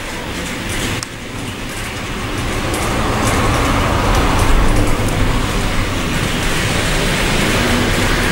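A model train rumbles along its tracks.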